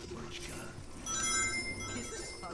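Coins chime brightly as they are collected.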